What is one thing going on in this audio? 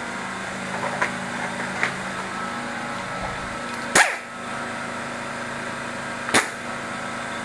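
Metal parts click and clack sharply as a tool is handled up close.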